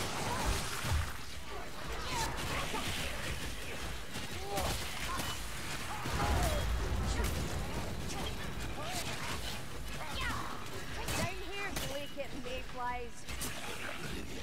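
A staff strikes and crunches into enemies in a fight.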